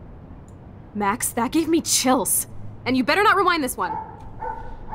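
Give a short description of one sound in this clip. A young woman speaks with excitement.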